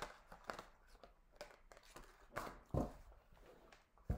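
A card is laid down on a table.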